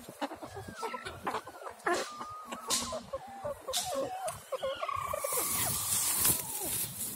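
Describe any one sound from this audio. A small animal squeaks and mews repeatedly close by.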